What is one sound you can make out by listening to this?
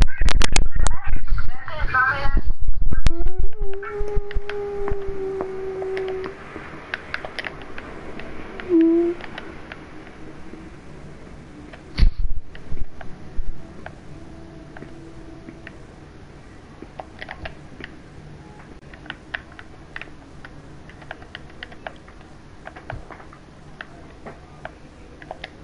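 Short game menu clicks tick again and again.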